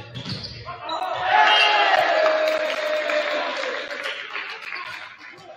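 Young men cheer and shout together in a large echoing gym.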